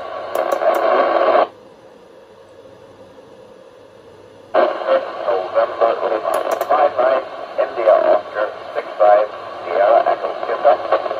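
A voice speaks through a radio receiver's loudspeaker, cutting off abruptly and then returning.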